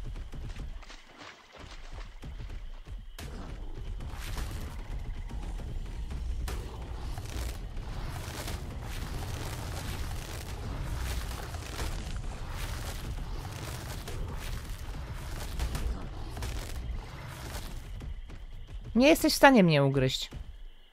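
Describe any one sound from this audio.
A large creature's heavy footsteps thud steadily on the ground.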